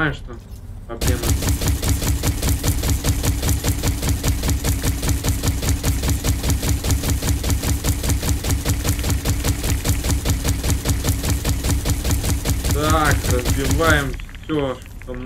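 A rapid-fire gun shoots in a long, steady burst.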